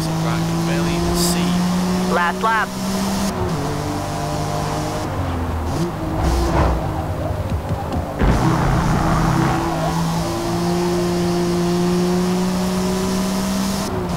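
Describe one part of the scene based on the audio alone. A racing car engine roars at high revs and drops in pitch as gears shift.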